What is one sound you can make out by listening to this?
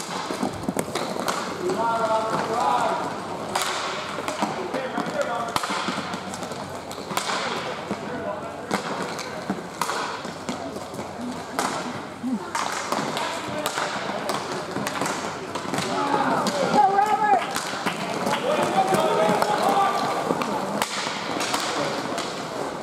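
Sticks and pucks clack sharply on a hard floor, echoing in a large hall.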